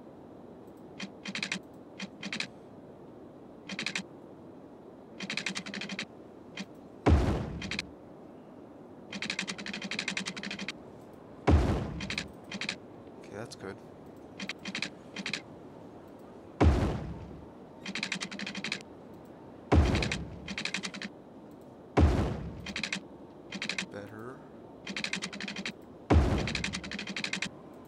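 Short clicking bursts sound while roads are drawn.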